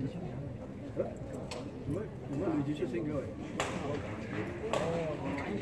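Rackets strike a shuttlecock with sharp smacks.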